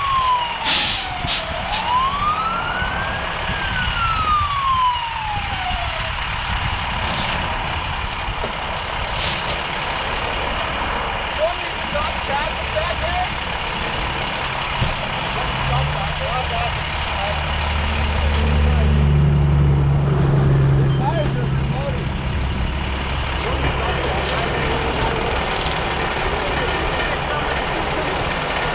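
A fire truck engine idles with a steady low rumble.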